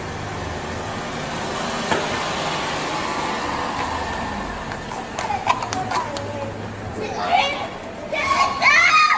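Traffic hums steadily on a street outdoors.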